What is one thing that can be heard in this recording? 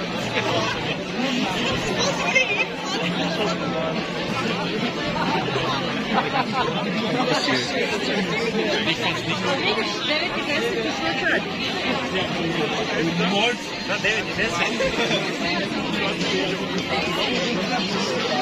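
Nearby men and women talk casually close by.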